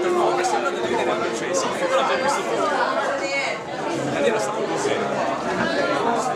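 A man talks animatedly close by.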